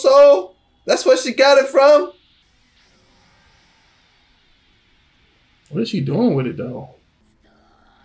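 A young man exclaims loudly and excitedly close by.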